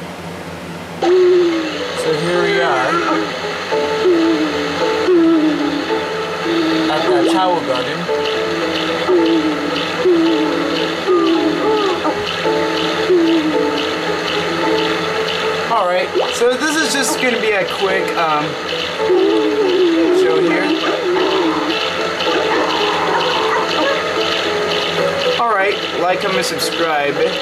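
Cheerful video game music plays through a television speaker.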